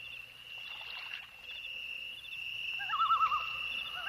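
Small waves lap and wash against the shore.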